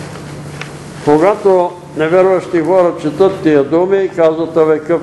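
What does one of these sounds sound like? An elderly man reads aloud steadily through a microphone.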